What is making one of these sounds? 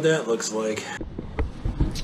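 A hand scraper scrapes across wood.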